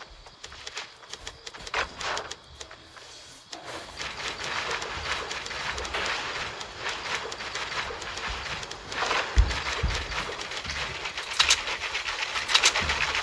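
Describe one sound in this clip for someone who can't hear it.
Game building pieces snap into place with quick clicks.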